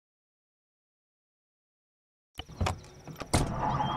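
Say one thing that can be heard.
A heavy vehicle door thuds shut.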